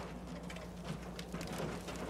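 A fire crackles in a metal barrel.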